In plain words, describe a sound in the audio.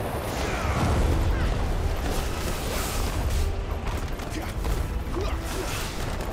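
Magic blasts crackle and burst.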